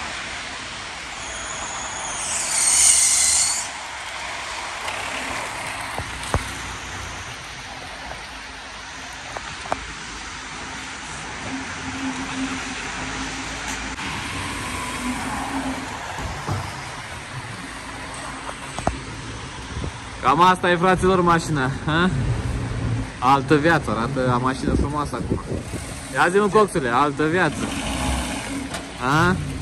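A car engine idles and hums as the car rolls slowly.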